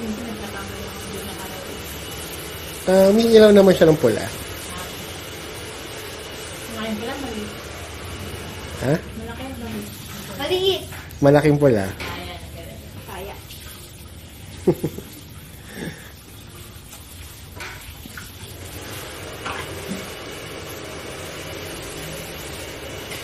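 Water sprays steadily from a shower head.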